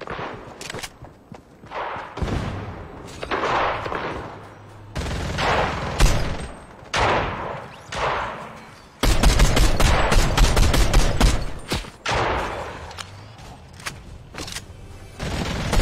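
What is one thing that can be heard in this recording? Footsteps run over sand.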